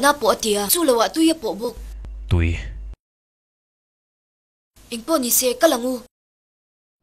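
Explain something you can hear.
A young woman speaks urgently.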